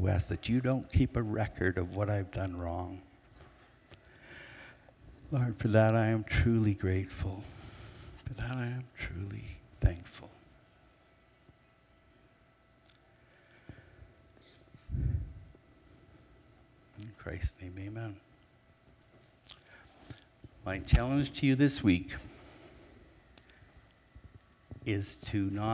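A man speaks calmly into a microphone, heard over loudspeakers in a large room, with long pauses.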